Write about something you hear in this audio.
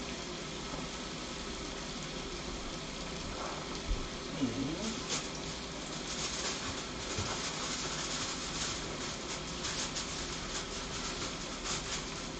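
Water simmers in a metal pot.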